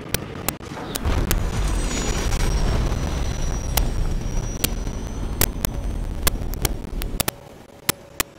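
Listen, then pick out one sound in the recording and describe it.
A glider roars and whooshes as it speeds through the air.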